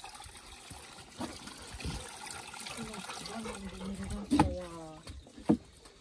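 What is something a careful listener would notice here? Water runs from a tap into a basin.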